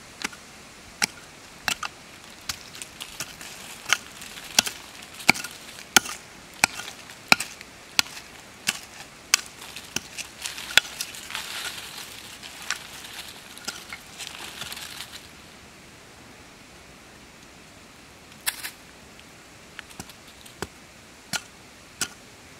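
A small blade chops and scrapes into dry soil in quick, sharp strokes.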